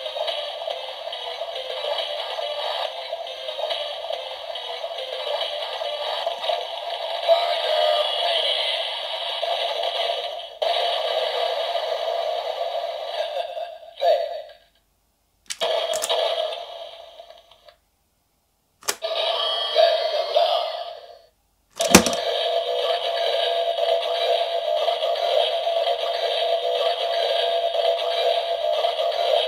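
A toy plays loud electronic music through a small tinny speaker.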